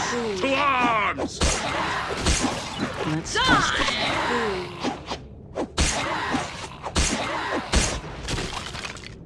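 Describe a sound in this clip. Weapons clash and thud in a fight.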